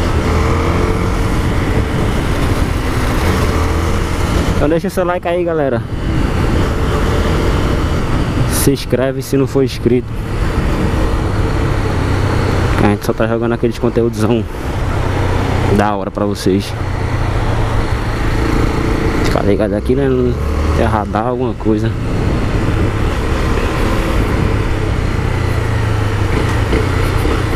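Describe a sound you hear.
A single-cylinder four-stroke motorcycle engine hums while cruising on a street.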